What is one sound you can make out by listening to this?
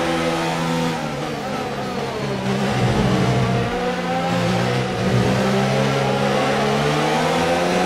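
A racing car engine drops in pitch as the car brakes for a corner, then revs up again.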